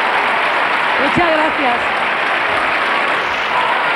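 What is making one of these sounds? A woman speaks into a microphone over a loudspeaker.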